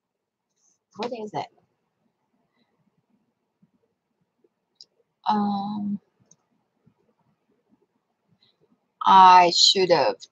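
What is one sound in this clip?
A woman speaks calmly and close up, in short bursts with pauses.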